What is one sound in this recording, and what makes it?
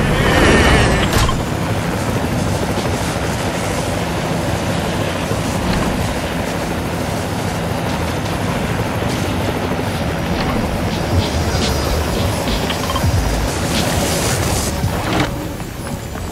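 A small rotor whirs steadily overhead.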